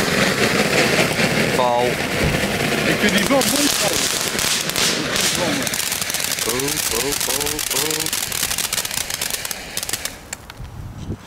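A firework fountain sprays sparks with a loud, steady hiss.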